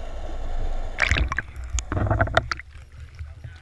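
Water splashes at the surface.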